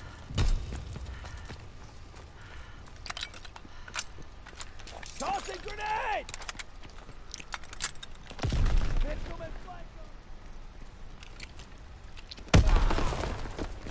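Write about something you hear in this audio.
Gunshots boom loudly and echo.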